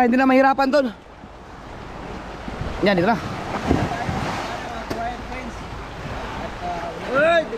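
Water laps and splashes close by.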